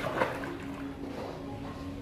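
Water splashes as a child swims.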